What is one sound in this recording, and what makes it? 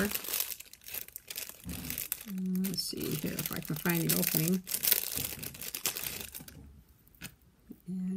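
A plastic bag crinkles and rustles as hands handle it close by.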